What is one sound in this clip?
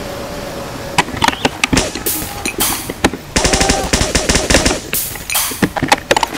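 A gun fires in quick bursts of sharp shots.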